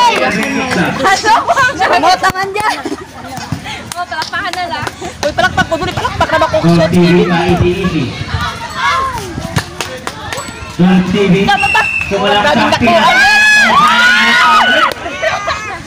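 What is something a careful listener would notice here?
A crowd of young people shouts and cheers nearby outdoors.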